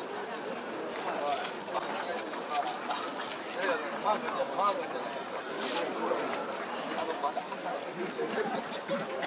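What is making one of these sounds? Men chant together as they carry a portable shrine.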